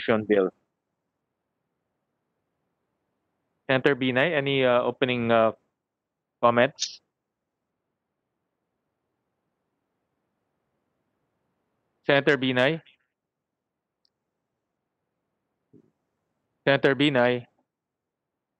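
A man speaks calmly into a microphone in short bursts with pauses between.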